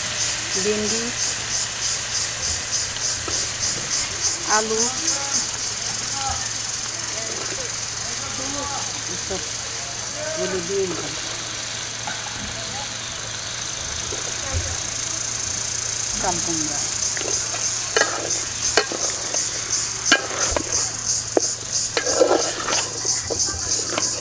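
A wood fire crackles steadily.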